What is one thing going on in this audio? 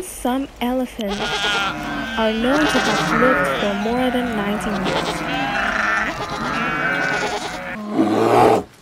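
Goats bleat.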